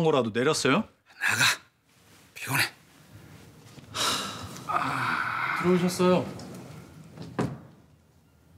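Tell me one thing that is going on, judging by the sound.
An elderly man groans.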